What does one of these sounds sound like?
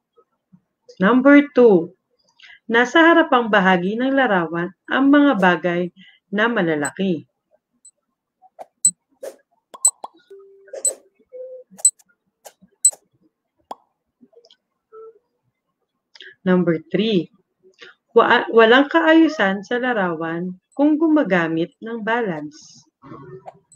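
A young woman speaks calmly through a microphone, reading out.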